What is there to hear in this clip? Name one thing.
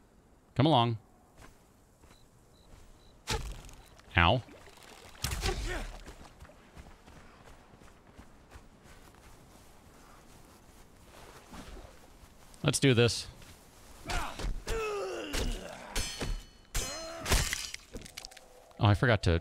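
A young man speaks casually, close to a microphone.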